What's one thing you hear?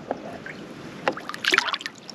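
A fish splashes into water.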